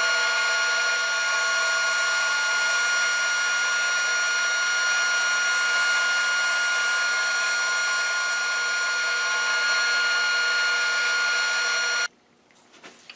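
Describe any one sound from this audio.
A band saw runs with a steady high whine, then stops abruptly.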